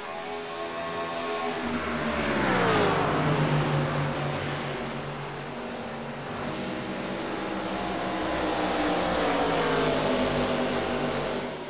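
Racing car engines roar steadily at high speed.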